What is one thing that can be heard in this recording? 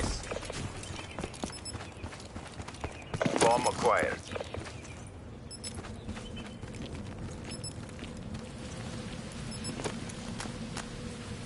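Footsteps tread steadily on dirt and rock.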